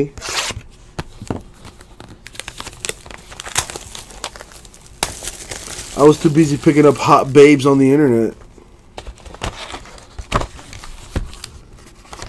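Cardboard packaging rustles and scrapes under handling.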